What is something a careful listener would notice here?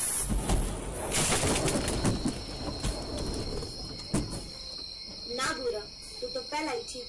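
Debris strikes against a windshield.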